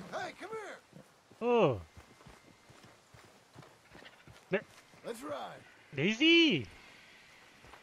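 A dog whines and yelps nearby.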